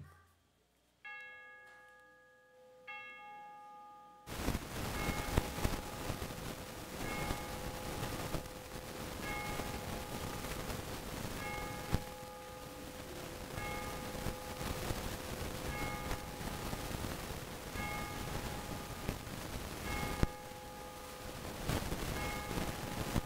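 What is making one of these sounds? An organ plays slow, held chords in a large echoing hall.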